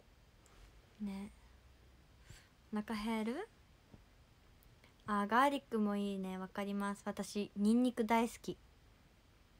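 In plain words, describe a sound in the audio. A young woman speaks calmly and close to the microphone, in short bursts with pauses.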